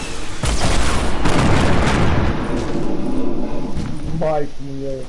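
Video game sound effects clatter and bang rapidly.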